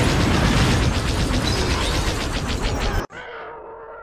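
Laser cannons fire in a rapid, steady stream.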